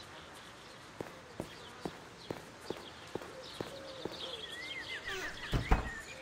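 Footsteps tread on a path.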